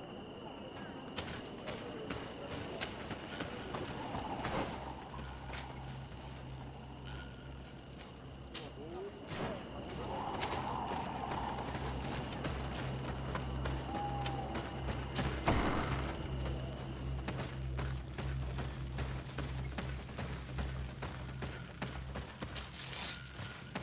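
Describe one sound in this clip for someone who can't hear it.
Footsteps thud quickly on a dirt path.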